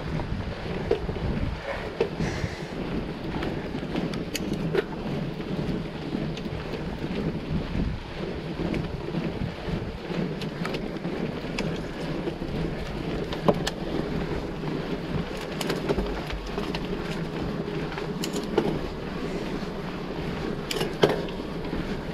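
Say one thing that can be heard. A bicycle frame clatters and knocks over rough stones.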